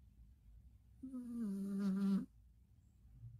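A cat lets out a long, low meow.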